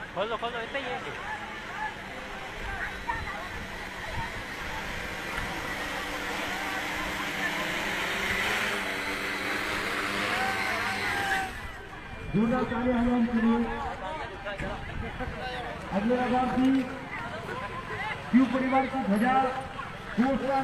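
A crowd of men talk and shout outdoors.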